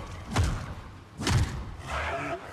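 A lightsaber hums and swooshes as it swings.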